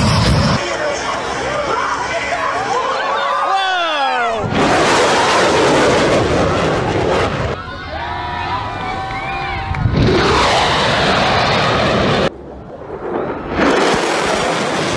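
A jet roars loudly as it flies low overhead.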